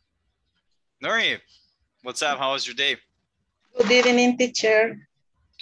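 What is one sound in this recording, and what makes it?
A young man speaks with animation over an online call.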